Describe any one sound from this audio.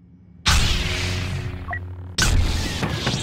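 A lightsaber hums and crackles.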